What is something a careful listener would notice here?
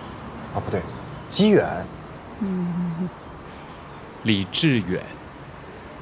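A young man speaks calmly up close.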